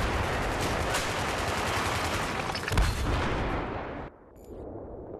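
A tank engine rumbles loudly.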